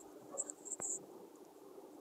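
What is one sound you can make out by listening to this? Scissors snip through thread.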